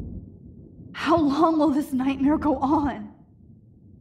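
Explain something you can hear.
A young woman speaks in a pained, shaky voice.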